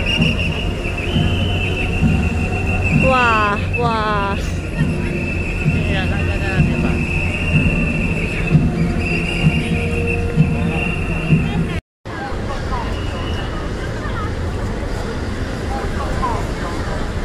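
A crowd of people chatters and murmurs nearby outdoors.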